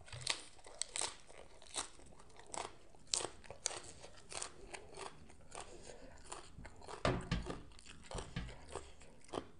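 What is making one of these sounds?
A woman chews food noisily, close up.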